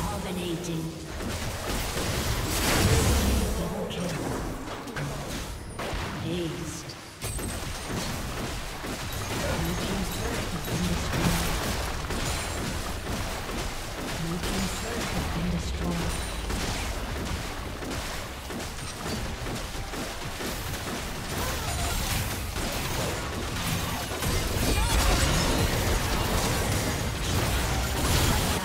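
Game spell effects whoosh and crackle throughout a battle.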